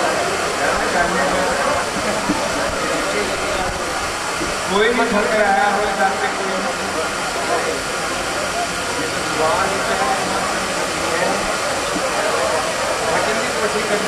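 An elderly man sings loudly into a microphone over a loudspeaker, in a large echoing space.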